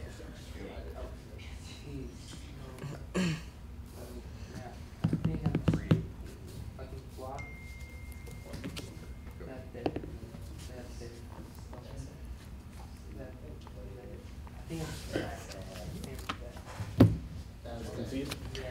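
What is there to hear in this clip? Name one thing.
Playing cards are shuffled and tapped together in hand.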